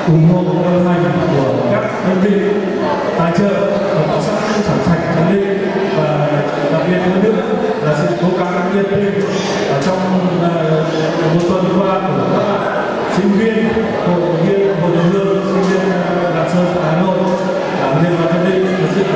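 A young man sings into a microphone, heard through loudspeakers.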